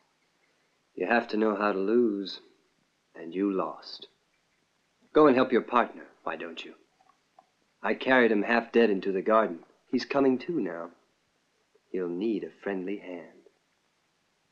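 A young man speaks softly nearby.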